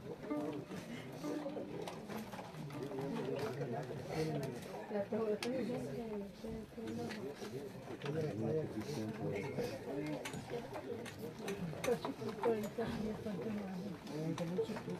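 A crowd of adult women and men talk in low voices close by, outdoors.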